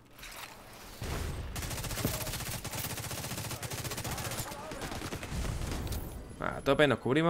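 Gunfire rattles rapidly.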